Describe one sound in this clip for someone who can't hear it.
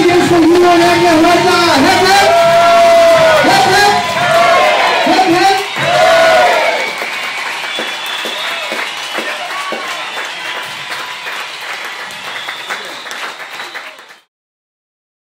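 A crowd of adults chatter and cheer nearby.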